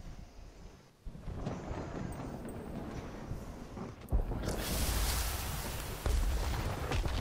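Loud fighting sound effects crash and roar.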